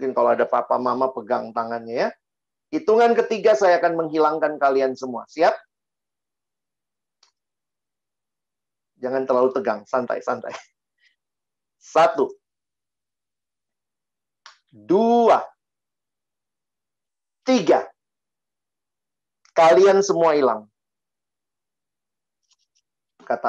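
A man speaks calmly into a microphone over an online call, pausing between phrases.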